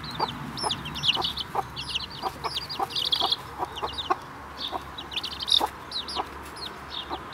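Young chicks peep in high, chirping calls.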